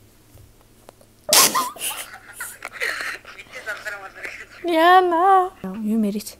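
A young woman giggles and laughs close by.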